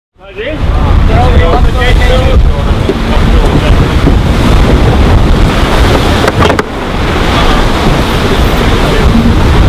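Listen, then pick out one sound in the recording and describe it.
Water rushes past a moving boat's hull.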